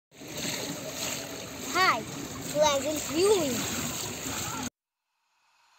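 Pool water laps and splashes softly.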